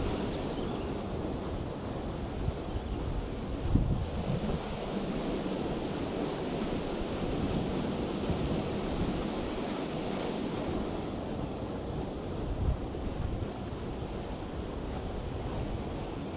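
Water rushes steadily over a weir outdoors.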